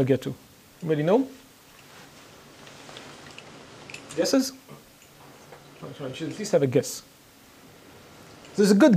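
A man speaks calmly into a microphone, lecturing in a room with a slight echo.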